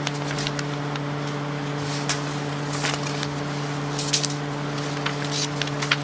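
Papers rustle and shuffle close by.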